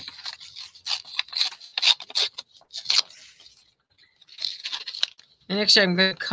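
Paper rustles as hands handle it.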